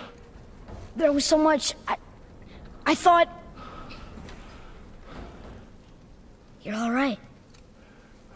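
A young boy calls out urgently nearby.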